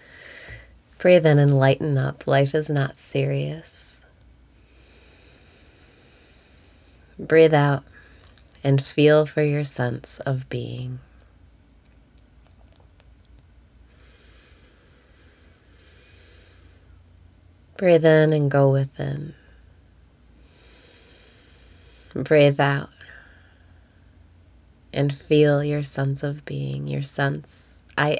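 A young woman speaks calmly and cheerfully into a close microphone, with pauses.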